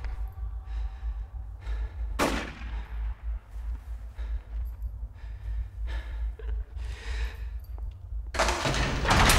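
A man breathes heavily in short, ragged gasps close by.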